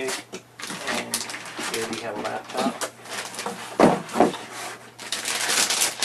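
A laptop slides against cardboard as it is lifted out of a box.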